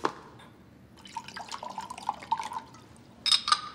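Water pours from a carafe into a glass.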